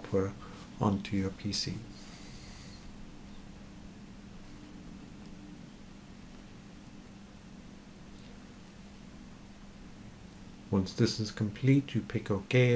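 A middle-aged man talks calmly into a close microphone.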